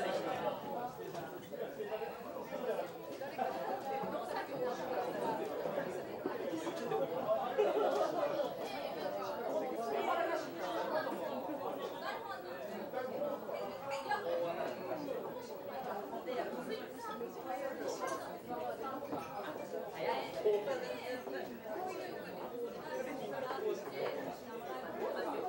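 A crowd of men and women chatters throughout, in a busy room.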